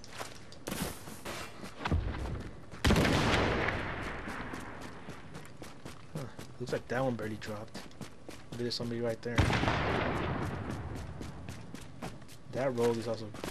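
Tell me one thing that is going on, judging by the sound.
Footsteps crunch quickly over snow at a running pace.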